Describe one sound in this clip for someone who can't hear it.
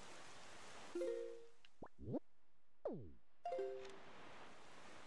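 Short bright chimes ring out.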